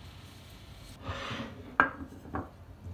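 A cloth rustles as it is pulled off a dish.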